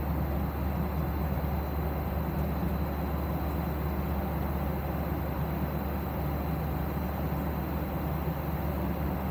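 A jet airliner's engines roar steadily in the cabin.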